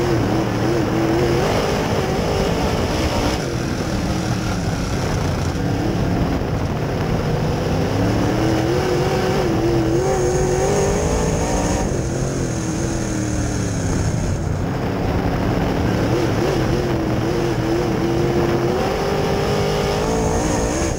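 A race car engine roars loudly up close, rising and falling in pitch as the driver works the throttle.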